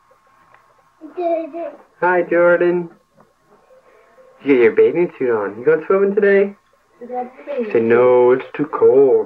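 A woman talks to a baby in a high, sing-song voice close by.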